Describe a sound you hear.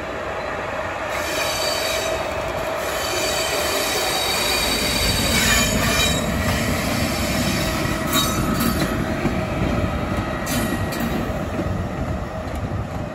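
An electric locomotive rumbles past on the rails, its motors whining steadily.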